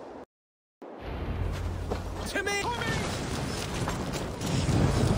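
Swords and shields clash in a battle.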